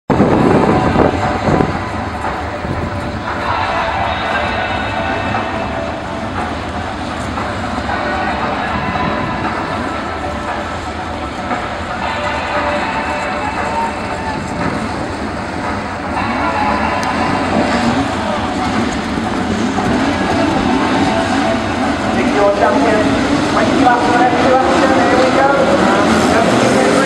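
A pack of stock car engines roars as the cars race around an oval track.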